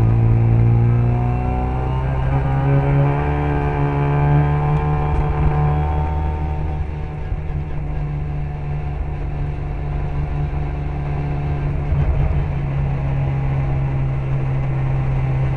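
A small car engine revs hard close by, rising and falling with gear changes.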